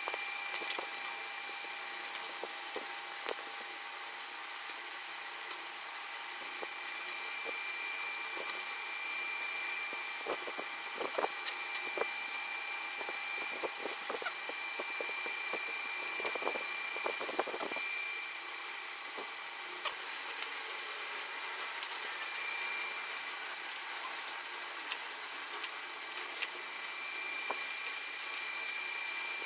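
Plastic backing paper crinkles and rustles as stickers are peeled and pressed on.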